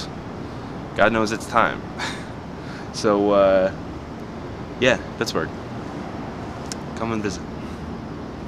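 A young man speaks close by in short bursts.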